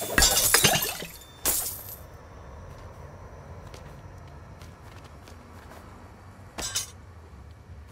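A magic blast bursts with a loud crackling whoosh.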